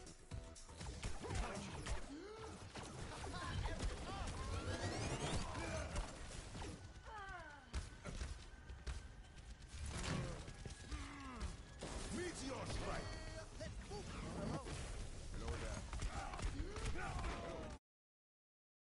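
Video game weapon fire and explosions go off.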